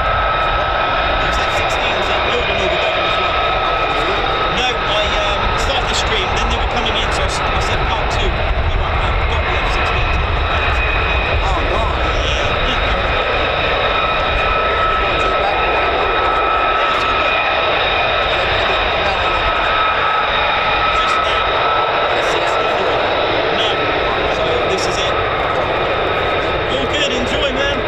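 Jet engines whine and roar steadily in the distance.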